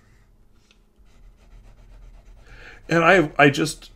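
A pen scratches on paper as it scribbles.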